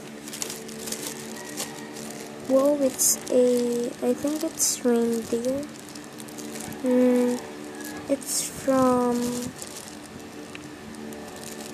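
A plastic bag crinkles as hands handle it.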